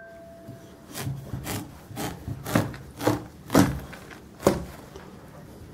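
A knife crunches through a watermelon rind.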